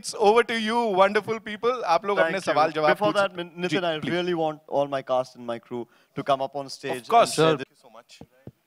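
A young man speaks into a microphone with animation over loudspeakers in a large hall.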